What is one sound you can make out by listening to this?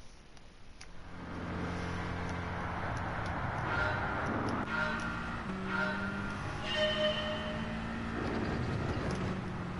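A racing car engine roars and revs up, its pitch dropping briefly with each gear change.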